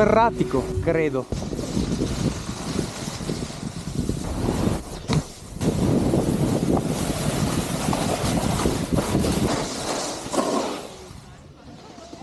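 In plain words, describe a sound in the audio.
A snowboard scrapes and hisses loudly over hard snow.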